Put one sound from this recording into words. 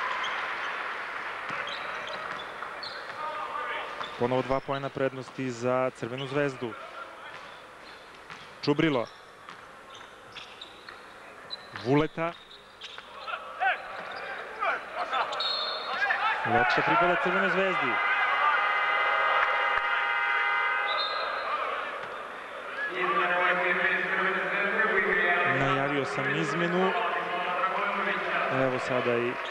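A large crowd roars and chants in an echoing arena.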